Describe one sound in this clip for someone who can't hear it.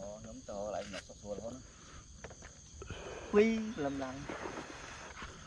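A man talks outdoors.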